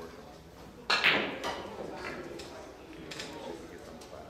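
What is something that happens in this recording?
Pool balls click against each other and roll across the table.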